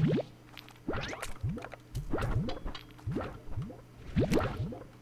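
A video game vacuum gun sucks up objects with rising cartoonish pops.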